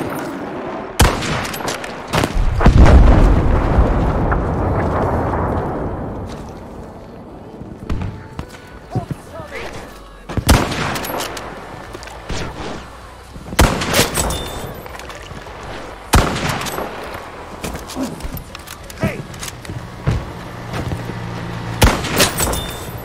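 A bolt-action rifle fires sharp, loud shots again and again.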